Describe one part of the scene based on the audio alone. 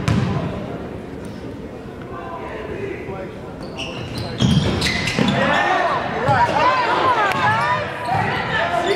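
A basketball thumps on the court.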